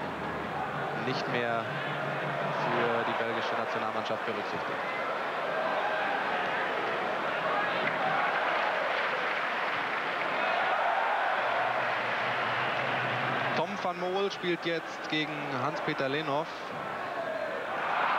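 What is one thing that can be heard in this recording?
A large stadium crowd murmurs and cheers steadily outdoors.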